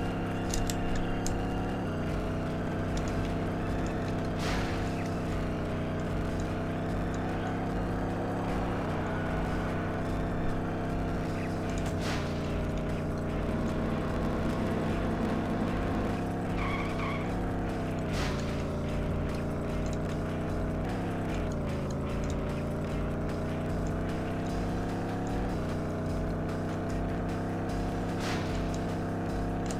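A racing car engine roars steadily, its pitch rising and falling with each gear change.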